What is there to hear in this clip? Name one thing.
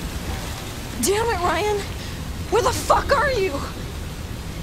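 A young woman shouts angrily, close by.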